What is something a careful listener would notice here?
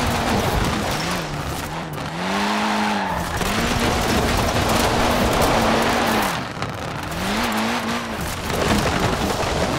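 A car crashes through a wooden fence with a crunch.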